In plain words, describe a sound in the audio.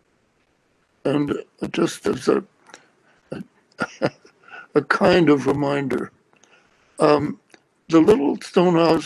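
An elderly man speaks calmly through an online call.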